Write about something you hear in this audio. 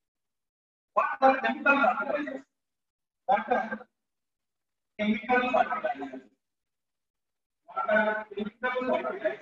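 A man speaks calmly and clearly into a microphone, pausing between phrases.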